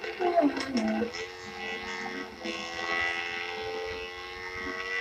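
A motorcycle engine whines steadily.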